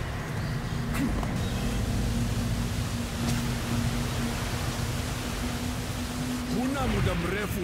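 A rope hums as a man slides along it.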